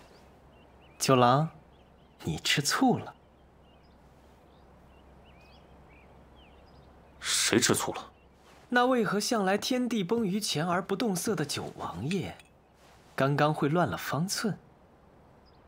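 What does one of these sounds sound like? A young man speaks calmly and teasingly, close by.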